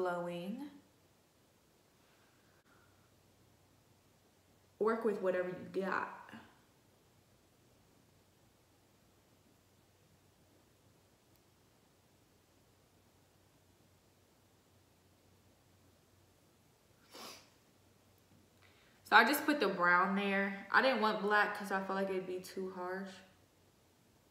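A young woman talks calmly and close by, in short bursts with long pauses.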